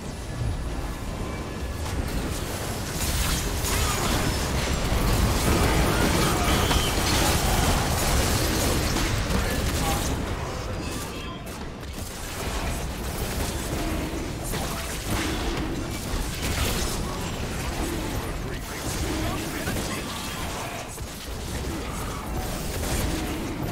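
Magic blasts and spell effects crackle and boom in a fast, busy fight.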